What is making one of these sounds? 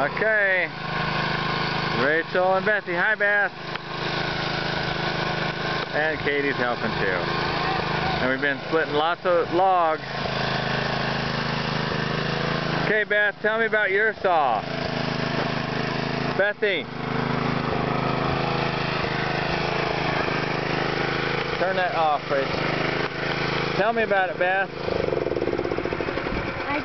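A small petrol engine hums steadily nearby.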